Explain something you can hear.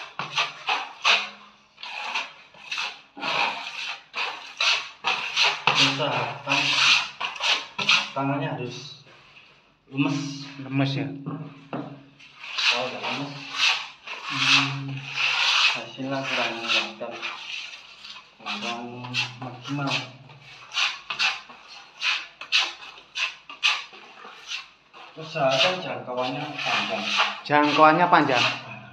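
A trowel scrapes wet plaster across a wall in repeated strokes.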